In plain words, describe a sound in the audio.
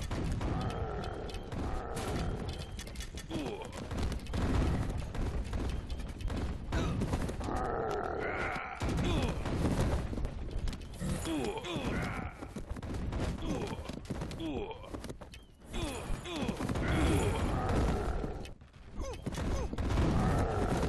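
Weapons clash and clatter in a busy battle.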